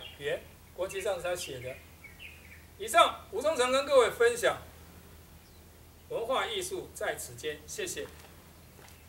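An elderly man speaks calmly outdoors.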